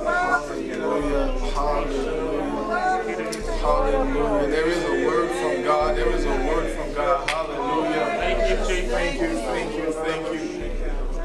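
A man speaks with animation into a microphone in an echoing room.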